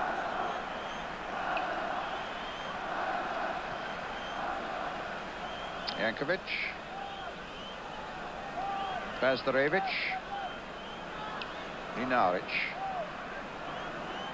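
A large crowd murmurs and roars steadily in an open stadium.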